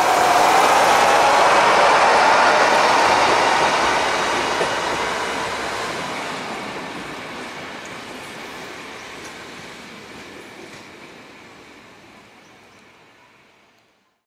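A train rolls past on the rails and fades into the distance.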